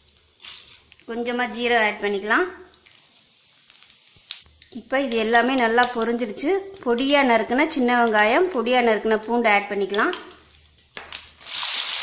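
Oil sizzles gently in a pan.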